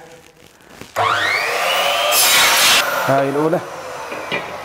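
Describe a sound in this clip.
An electric saw cuts through a board with a loud, harsh screech.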